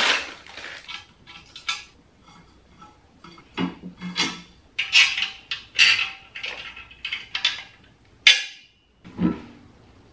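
Metal parts clink and knock together during assembly.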